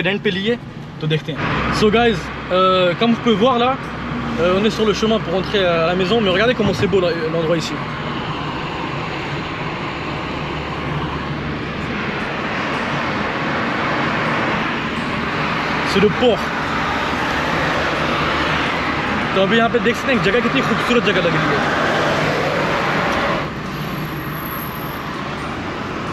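A car's engine and tyres hum steadily on the road.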